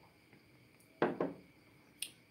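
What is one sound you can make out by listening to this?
A glass is set down on a hard table.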